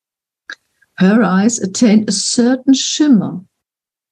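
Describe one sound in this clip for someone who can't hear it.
An elderly woman speaks calmly over an online call.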